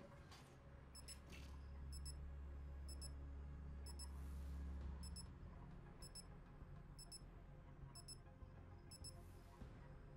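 A game menu beeps once each second as a countdown ticks down.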